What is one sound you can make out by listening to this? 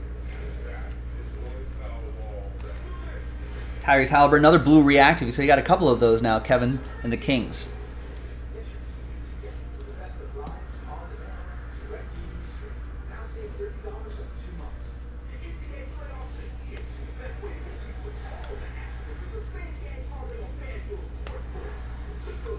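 Trading cards shuffle and slide in a man's hands.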